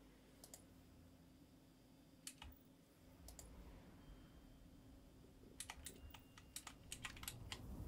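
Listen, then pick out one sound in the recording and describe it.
Short game menu clicks and chimes sound as items are selected.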